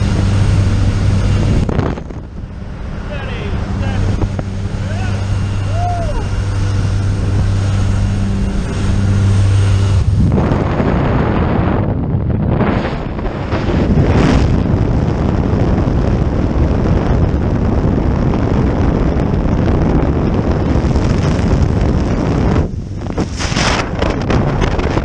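Wind roars loudly past the open door.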